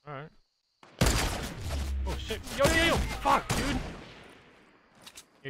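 Gunfire bursts loudly in a firefight.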